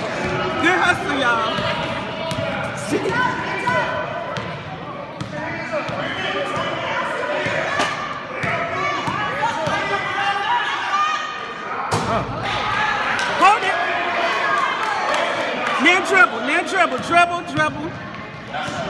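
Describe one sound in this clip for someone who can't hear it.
Children shout and cheer in a large echoing gym.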